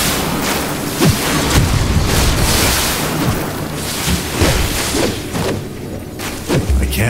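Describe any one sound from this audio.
Heavy blows thud as weapons strike creatures.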